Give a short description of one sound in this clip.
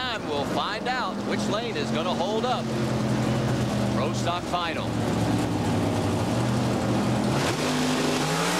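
Race car engines idle and rev loudly.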